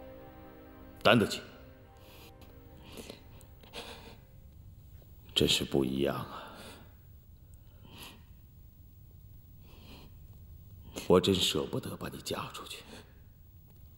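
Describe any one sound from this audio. A middle-aged man speaks in a low, calm voice close by.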